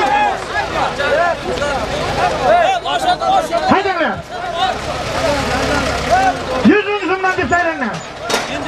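A large crowd of men shouts and chatters loudly outdoors.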